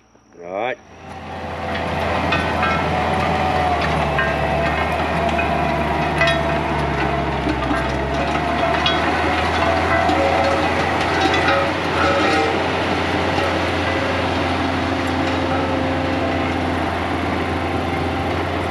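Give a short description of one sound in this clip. A mulching head grinds and crackles through brush.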